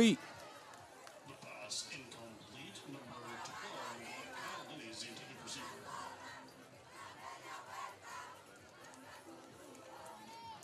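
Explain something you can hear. A crowd murmurs and calls out in the distance.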